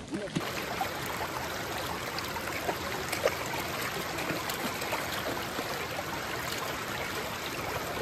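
A dog splashes through shallow water.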